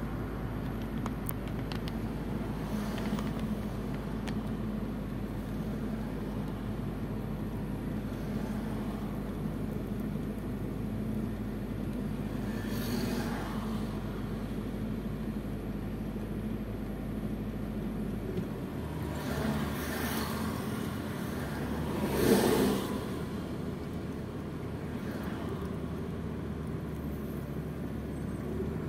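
Cars pass by on the road now and then.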